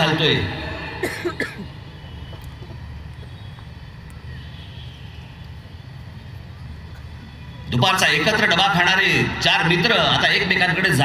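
A man speaks forcefully through loudspeakers outdoors.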